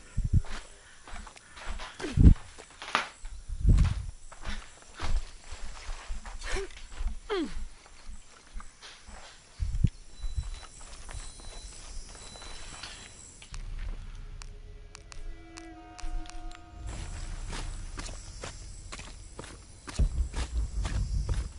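Footsteps scuff and crunch on dirt and stone.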